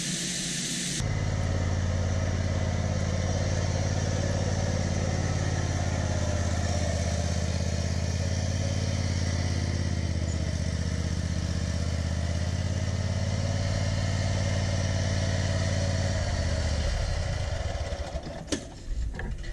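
A riding mower's engine hums steadily and then winds down.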